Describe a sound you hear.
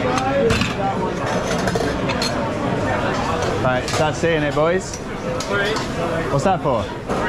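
Dishes and pans clink and clatter.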